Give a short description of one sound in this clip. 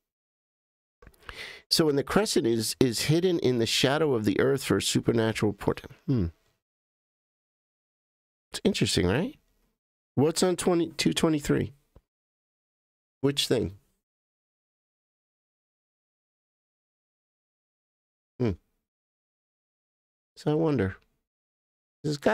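A man speaks with animation into a close microphone, in bursts with pauses.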